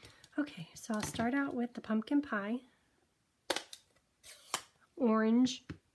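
A plastic ink pad case clicks open and shut.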